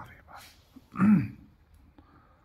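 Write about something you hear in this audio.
A puppy gives a short, sharp yelp.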